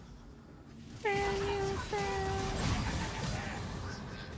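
Game sound effects chime and clash during a fight.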